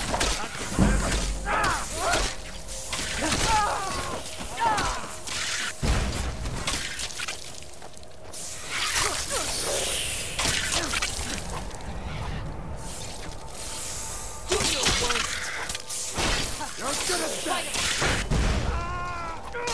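Swords clash and strike armour in a fight.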